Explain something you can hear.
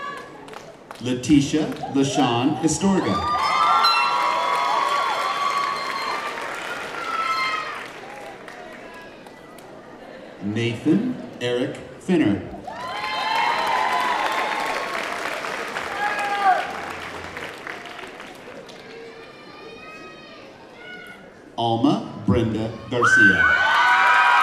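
A man announces names through a loudspeaker in a large hall.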